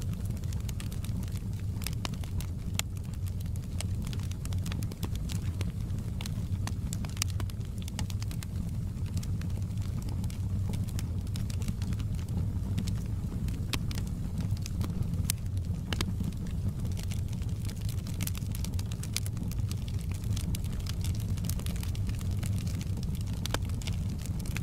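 A fire roars with a low, steady rumble.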